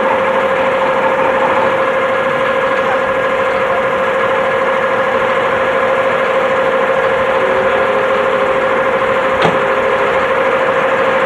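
An electric locomotive hauling a passenger train hums steadily as it approaches.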